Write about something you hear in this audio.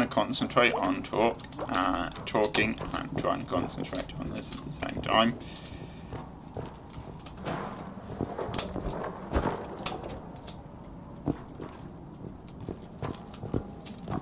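Light footsteps patter on wood.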